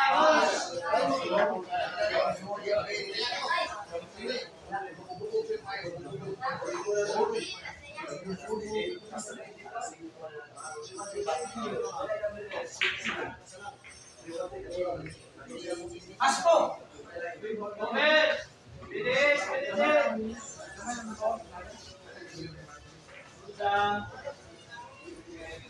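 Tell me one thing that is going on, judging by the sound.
A crowd of young men chatters and calls out loudly in a room with some echo.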